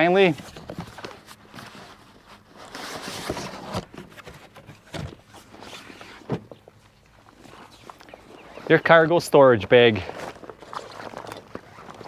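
A fabric bag rustles as it is handled.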